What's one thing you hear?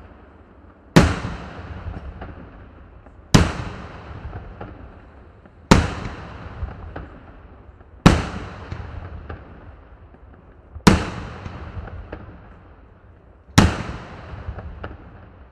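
Fireworks explode overhead with loud, evenly spaced booms that echo away.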